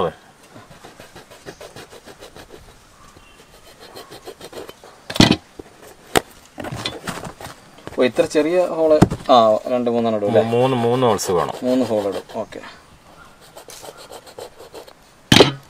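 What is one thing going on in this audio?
A metal rod taps and scrapes against a rubber sheet.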